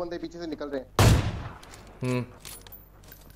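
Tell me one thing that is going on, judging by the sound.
A sniper rifle fires a loud single shot.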